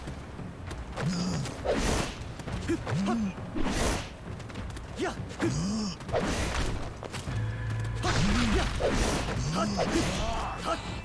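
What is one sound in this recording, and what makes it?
Sword slashes and hits ring out in a video game fight.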